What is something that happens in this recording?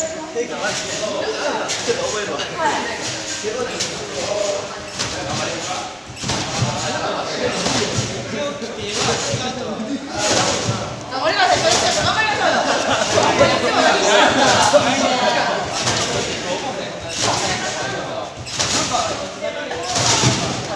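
A trampoline thumps and creaks rhythmically under a bouncing gymnast.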